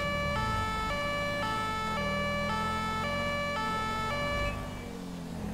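A police siren wails in a fast two-tone pattern, then cuts off.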